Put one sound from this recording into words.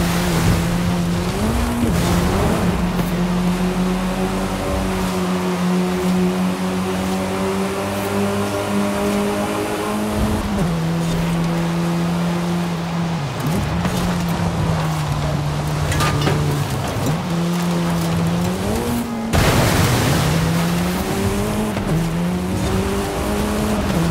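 A car engine roars loudly, shifting gears as it speeds up.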